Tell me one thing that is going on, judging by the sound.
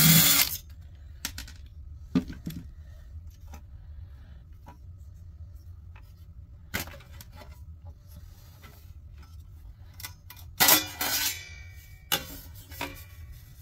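A metal case clanks and rattles as it is handled.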